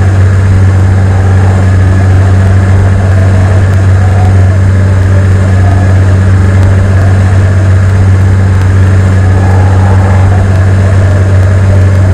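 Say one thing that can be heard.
Propeller engines drone steadily with a low hum.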